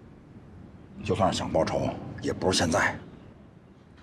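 A man speaks quietly and urgently close by.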